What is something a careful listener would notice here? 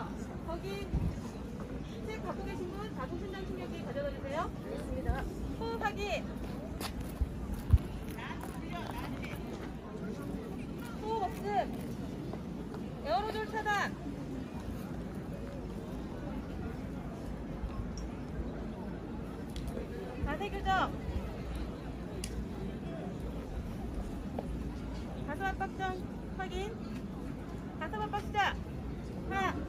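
A young woman speaks in short, clear phrases nearby.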